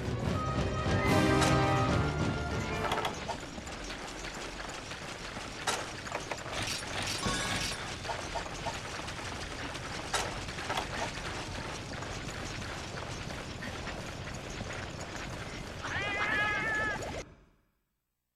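A game's background sound hums steadily, then cuts off.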